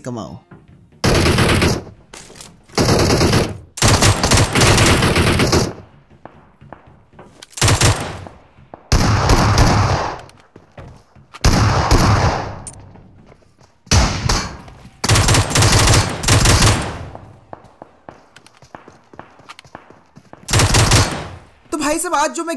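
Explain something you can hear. Rapid rifle fire rattles in loud bursts.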